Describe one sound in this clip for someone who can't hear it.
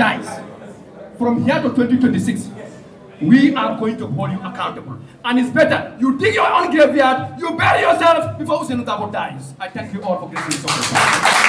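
A man speaks loudly and with animation through a microphone.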